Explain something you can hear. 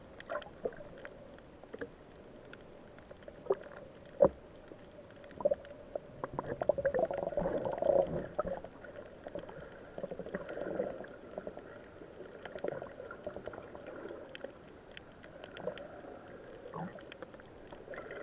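Underwater sounds are muffled, with soft clicks and crackles all around.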